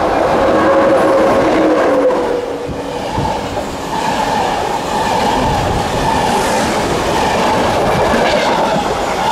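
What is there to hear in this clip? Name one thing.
Passenger coaches rush past close by, wheels rumbling on the rails.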